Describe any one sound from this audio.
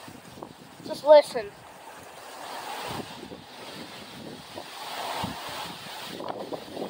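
Strong wind roars in gusts outdoors.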